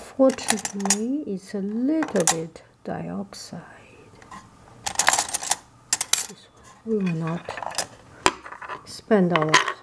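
Metal spoons clink against each other.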